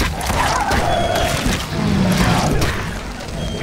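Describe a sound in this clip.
A bear growls and roars close by.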